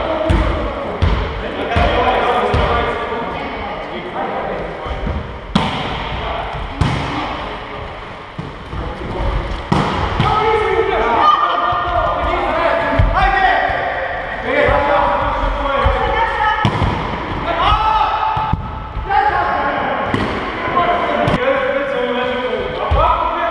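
Sneakers squeak on the court floor.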